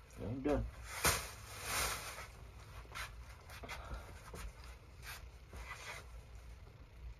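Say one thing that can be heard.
Clothing rustles as a shirt is handled.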